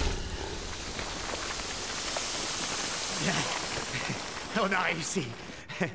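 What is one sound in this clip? Flames crackle and hiss steadily.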